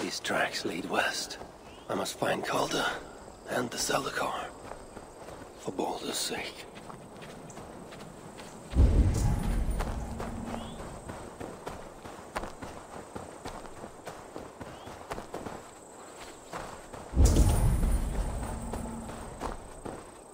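Footsteps crunch on a stony path.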